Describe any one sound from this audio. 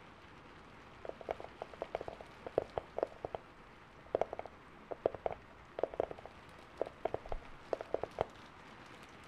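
Fingers tap and brush softly right up against a microphone.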